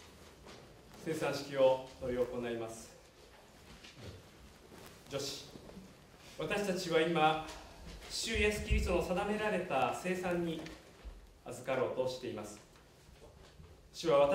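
A man reads aloud calmly in an echoing room.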